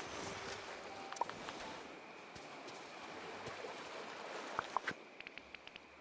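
Ocean waves wash softly onto a shore.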